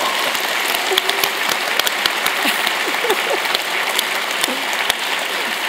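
A man laughs on stage.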